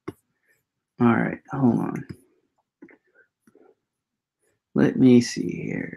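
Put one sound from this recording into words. A man speaks calmly and close to a microphone, pausing between phrases.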